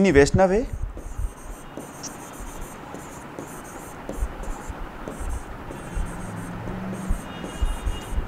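A marker squeaks on a board.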